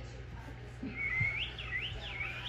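A puppy whimpers softly.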